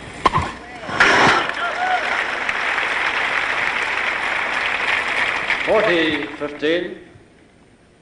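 A crowd applauds loudly, then the applause fades.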